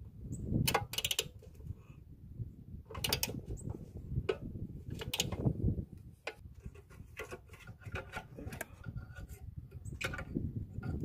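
A hand fiddles with a metal throttle linkage, with small clicks and rattles.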